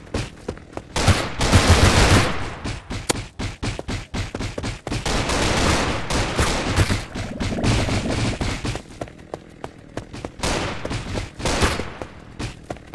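Blood splatters wetly in a burst of gory impacts.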